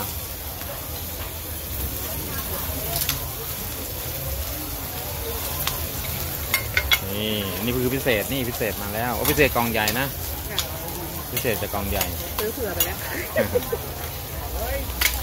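Food sizzles steadily on a hot griddle.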